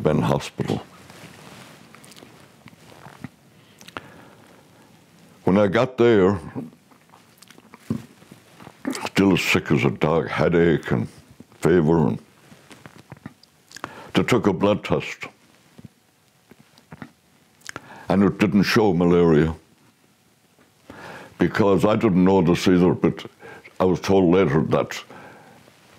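An elderly man speaks calmly and slowly, close to a microphone, with pauses.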